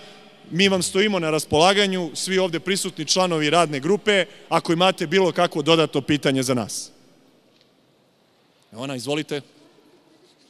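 A man speaks firmly and close into a microphone, with short pauses.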